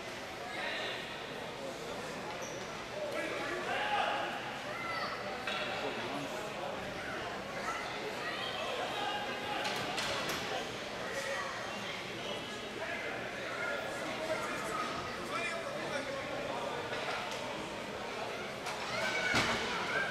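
Hockey sticks clack against a ball on a hard floor.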